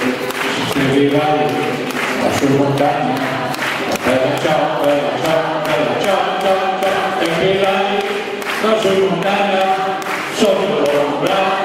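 An elderly man sings loudly close by.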